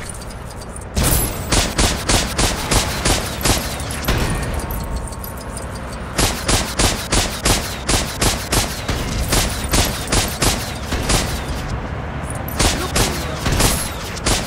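A vehicle's gun fires rapid bursts of loud shots.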